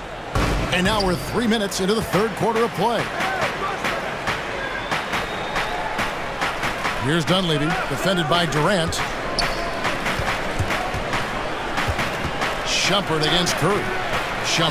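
A crowd murmurs steadily in a large echoing arena.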